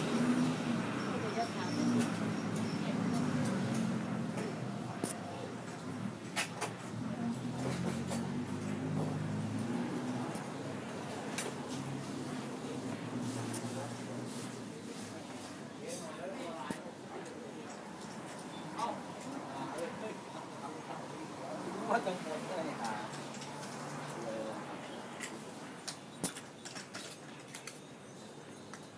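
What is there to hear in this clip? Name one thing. Traffic rumbles steadily along a street nearby.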